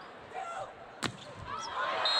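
A volleyball is struck hard with a sharp smack.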